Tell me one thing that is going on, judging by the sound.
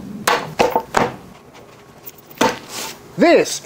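A leather roll thumps and rustles as it is unrolled.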